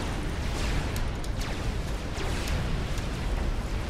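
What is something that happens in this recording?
Laser weapons fire in quick, sharp bursts.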